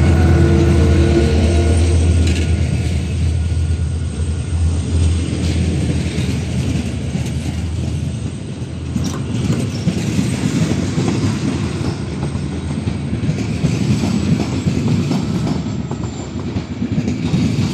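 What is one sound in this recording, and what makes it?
Train wheels clatter and squeal over the rails as carriages roll past.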